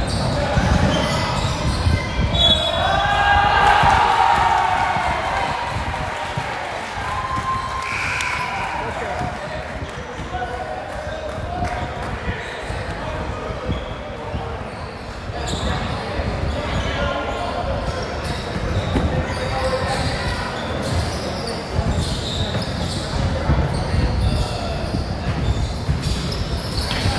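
Young men shout and call out to each other in a large echoing gym.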